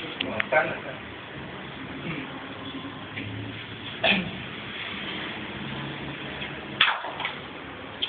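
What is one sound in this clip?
A man taps and scrapes at something on a hard floor nearby.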